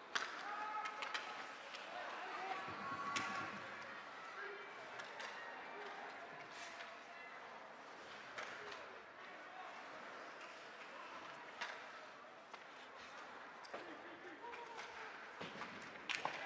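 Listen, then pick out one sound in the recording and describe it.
Hockey sticks click and clack against the puck.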